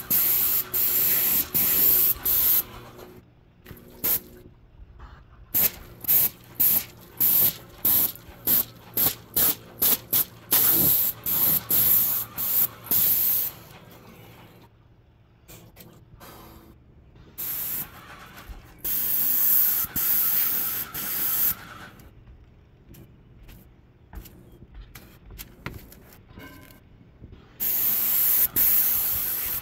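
A paint sprayer hisses in short, quick bursts.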